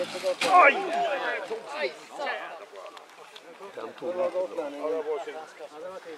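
A rally car slides and crashes off a gravel road.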